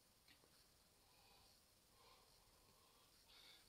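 A man exhales a long breath.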